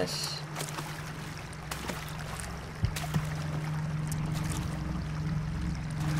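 Water ripples and laps gently.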